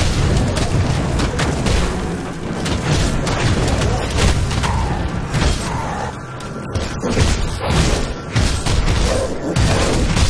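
Fire spells burst and roar.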